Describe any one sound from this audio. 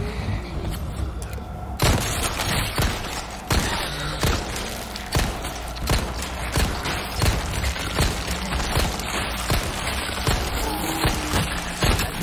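A creature groans and growls.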